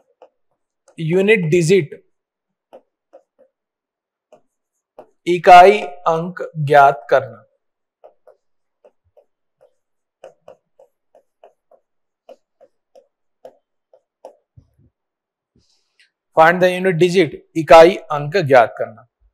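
A man speaks calmly through a close microphone, in short bursts.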